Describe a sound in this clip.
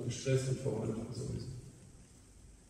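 A man speaks briefly in a large, echoing room.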